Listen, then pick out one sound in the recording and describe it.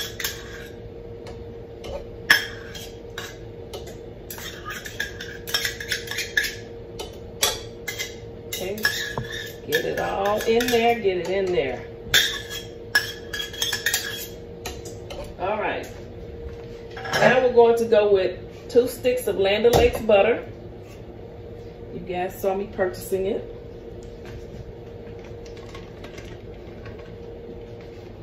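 A scoop clinks against a metal bowl as ingredients are tipped in.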